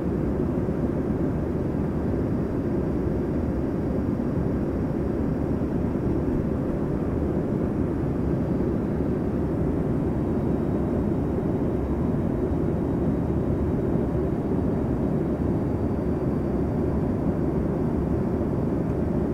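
A jet engine roars steadily, heard from inside an aircraft cabin.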